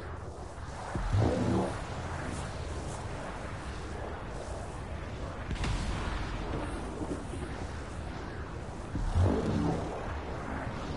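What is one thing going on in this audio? A bright musical chime rings out twice.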